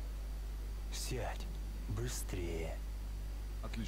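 A man speaks in a rough, casual voice.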